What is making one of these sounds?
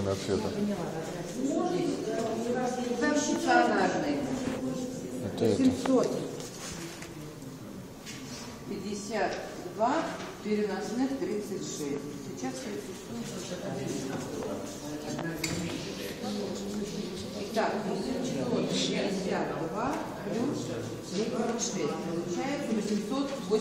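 A woman talks nearby at a calm pace.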